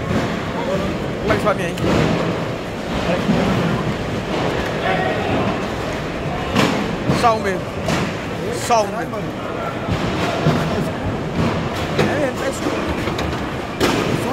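Shoes step on plastic crates.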